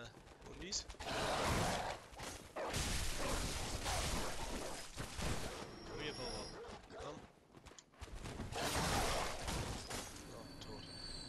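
Wild beasts snarl and growl while attacking.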